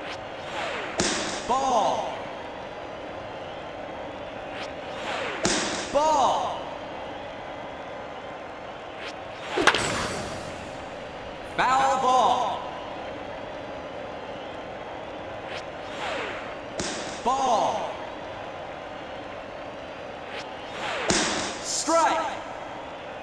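A pitched ball smacks into a catcher's mitt several times.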